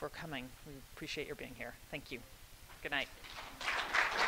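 A woman speaks into a microphone to an audience, heard through loudspeakers in a large room.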